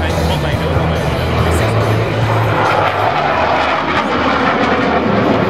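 Jet planes roar overhead with a loud, steady rumble.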